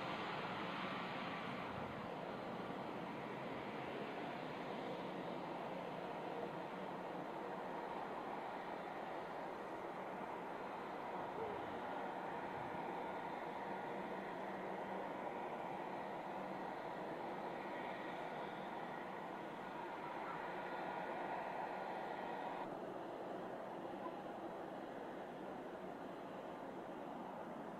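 A jet airliner's engines roar steadily as it rolls along a runway.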